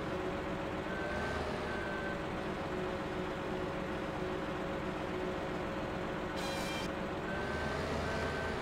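A hydraulic arm whines as it moves.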